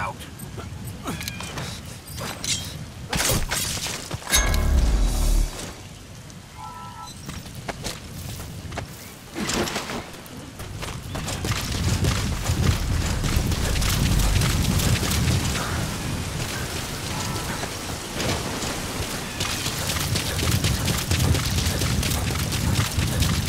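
Footsteps crunch through grass and dirt.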